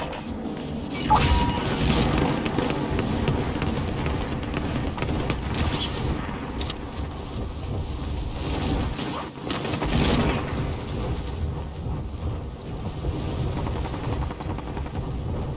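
Wind rushes loudly past during a fall through the air.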